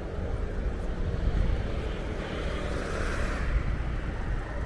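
A motorbike passes close by and fades.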